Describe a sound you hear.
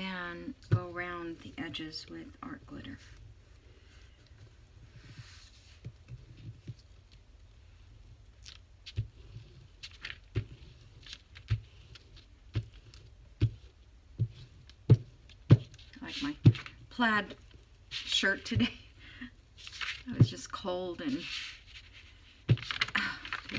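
A small dauber taps and dabs on a sheet of paper.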